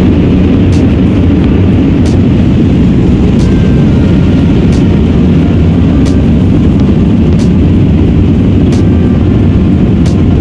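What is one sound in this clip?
Jet engines roar loudly and steadily as an airliner takes off.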